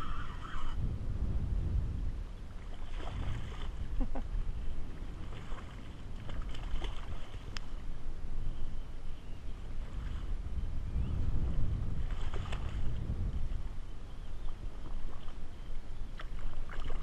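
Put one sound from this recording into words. Wind rumbles outdoors across open water.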